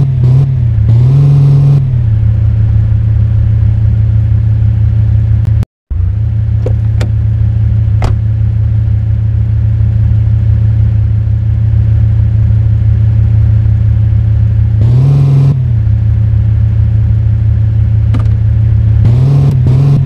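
A car engine hums steadily and revs up now and then.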